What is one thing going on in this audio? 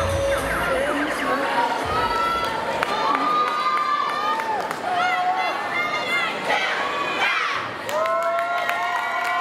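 A crowd of young people screams and cheers loudly in a large echoing hall.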